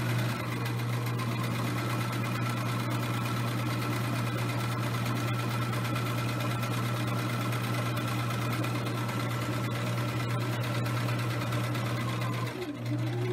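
A sewing machine hums and whirs steadily as it stitches fabric.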